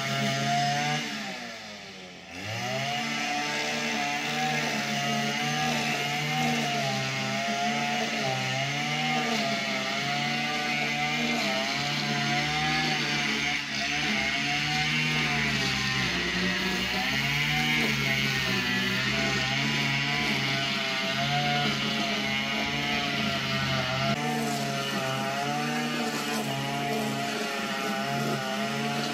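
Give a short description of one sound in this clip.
A string trimmer engine whines steadily nearby, briefly dropping in pitch and revving back up.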